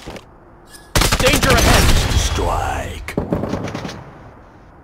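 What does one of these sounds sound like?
A rifle fires a rapid burst of loud shots.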